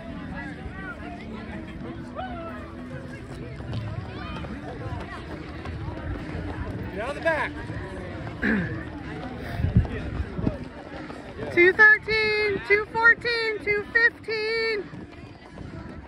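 A crowd of spectators chats outdoors in the distance.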